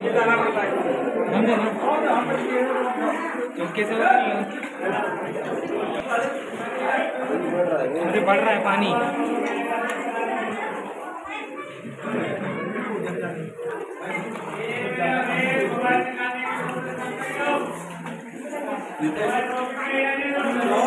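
Several people talk at once nearby, echoing in an enclosed space.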